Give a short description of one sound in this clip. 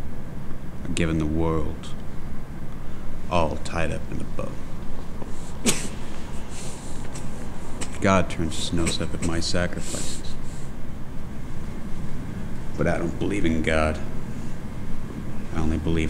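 A man speaks quietly and slowly, close by, with long pauses.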